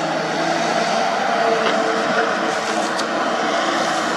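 Soil and stones tumble from an excavator bucket.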